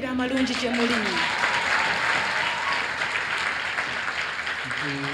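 A crowd cheers and applauds.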